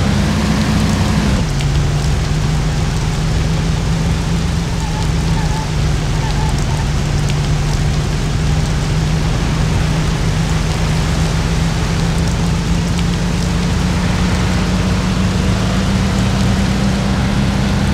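An old car engine hums steadily, its pitch dropping briefly as it shifts gear.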